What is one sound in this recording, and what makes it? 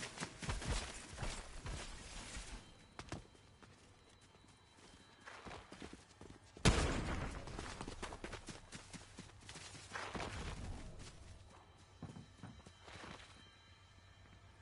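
Footsteps run quickly over grass and hard ground.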